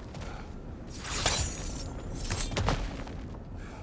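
A metal chain rattles and whooshes as a figure swings through the air.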